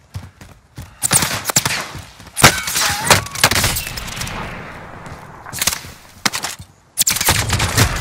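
Gunshots crack loudly nearby.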